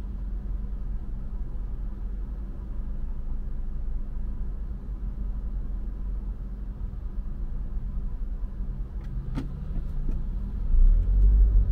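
A car engine idles low and steady, heard from inside the car.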